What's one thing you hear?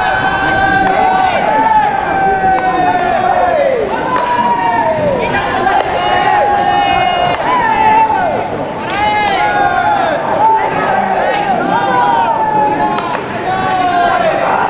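Young men shout and call out loudly across an open field.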